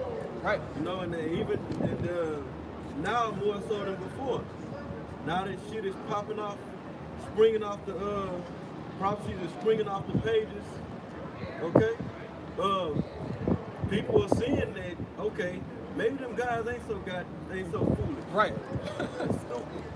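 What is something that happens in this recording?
A young man talks with animation close by, outdoors.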